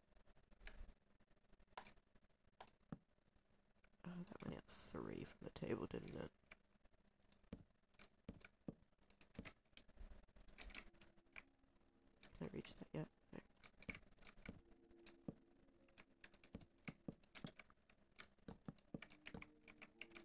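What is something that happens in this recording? Wooden blocks are placed with quick, soft knocks, over and over.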